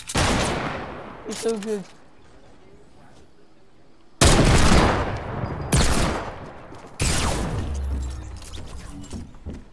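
Loud gunshots bang and echo, several times.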